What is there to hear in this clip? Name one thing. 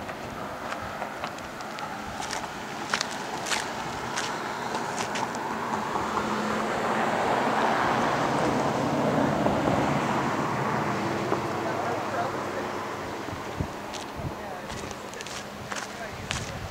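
Wind blows across the open outdoors.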